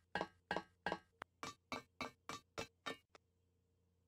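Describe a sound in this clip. Quick, even footsteps tap on metal ladder rungs.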